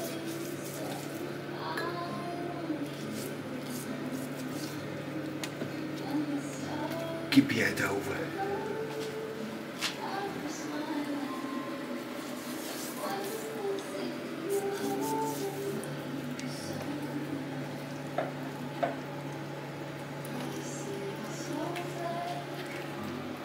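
Raw chicken pieces squish and slap against a metal baking tray.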